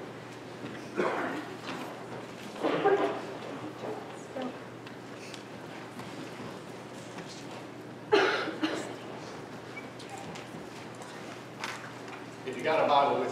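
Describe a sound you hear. A young man speaks calmly into a microphone in an echoing hall, with long pauses.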